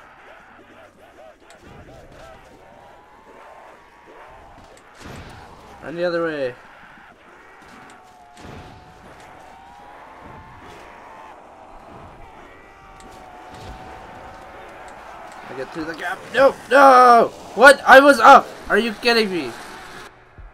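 Zombies groan and moan nearby.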